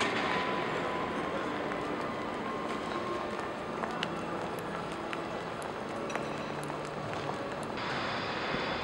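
A crowd murmurs faintly in a large echoing hall.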